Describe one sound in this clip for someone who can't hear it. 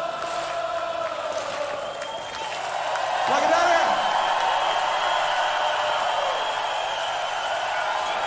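An orchestra plays sustained music.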